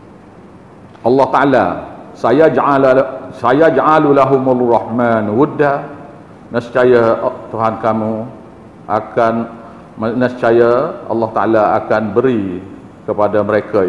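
An elderly man speaks calmly and steadily into a close microphone.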